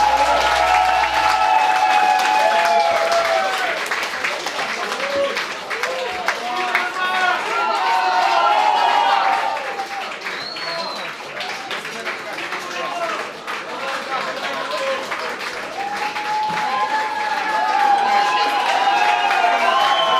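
A crowd cheers and shouts.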